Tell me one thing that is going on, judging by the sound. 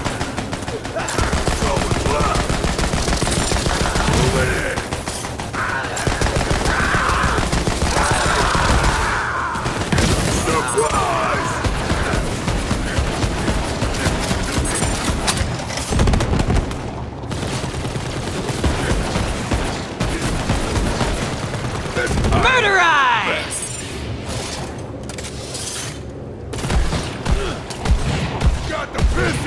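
Guns fire rapidly in bursts with loud blasts and explosions.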